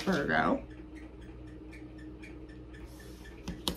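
Cards rustle and flick in a hand.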